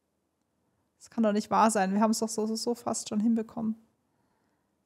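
A young woman speaks with animation, close to a headset microphone.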